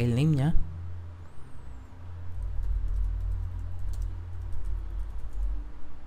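Keys tap on a keyboard in quick succession.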